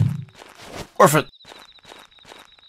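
A short chime rings out once.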